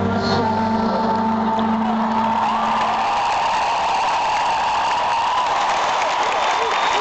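A huge crowd cheers and sings loudly in a vast echoing arena.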